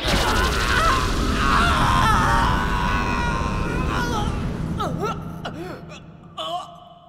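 A loud energy blast roars and slowly fades.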